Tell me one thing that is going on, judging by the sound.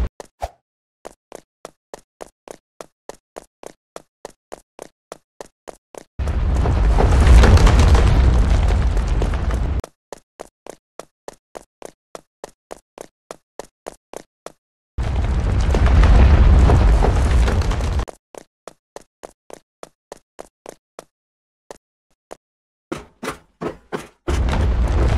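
Quick footsteps tap steadily on hard ground.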